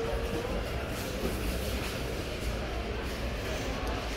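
Footsteps fall on a hard floor indoors.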